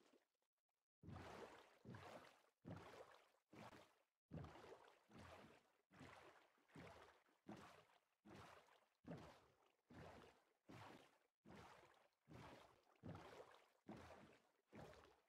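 Paddles of a rowing boat splash through water in a steady rhythm.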